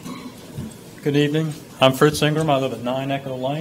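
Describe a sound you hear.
A man speaks into a microphone in a large room.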